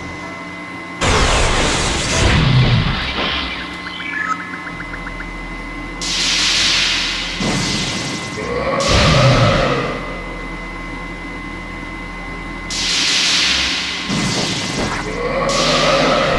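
Magic blasts whoosh and hiss in bursts.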